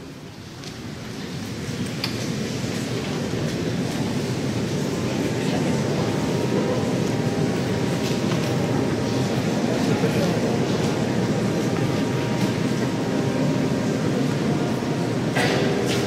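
A crowd of men and women chatter and laugh close by.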